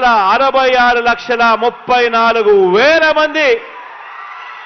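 A man speaks with animation into a microphone, heard over loudspeakers.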